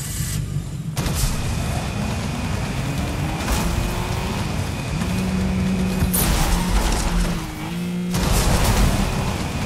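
A car engine revs and hums as it speeds along.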